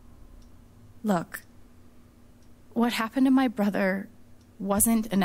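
A young woman speaks quietly and earnestly close by.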